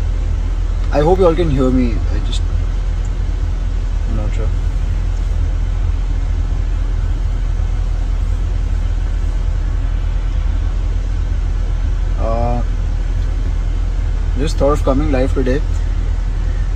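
A young man speaks briefly and calmly, close to a phone microphone.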